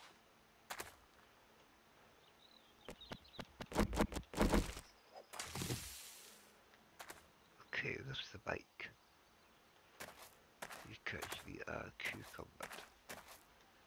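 Footsteps crunch on a gravel path.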